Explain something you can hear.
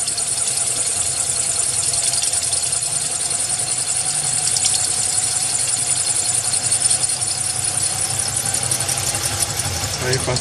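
A drill bit grinds with a high scratching hiss against glass.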